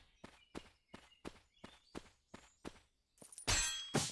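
Footsteps tap at a quick, steady pace.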